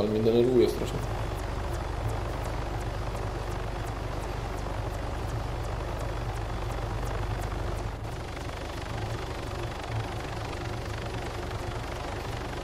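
A helicopter engine drones.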